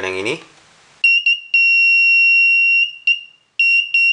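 An electronic buzzer sounds a high, shrill steady tone with brief breaks.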